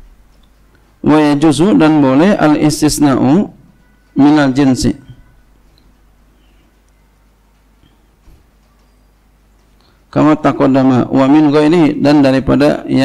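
A man speaks calmly into a microphone, in a chanting, melodic voice, with pauses.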